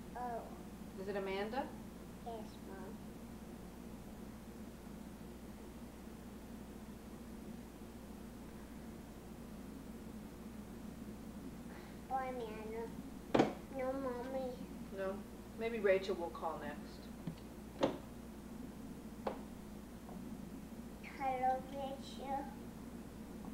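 A young child babbles and talks playfully, close by.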